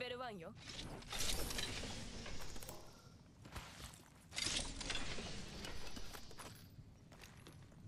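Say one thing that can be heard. A heavy metal lid slides open with a rushing whoosh.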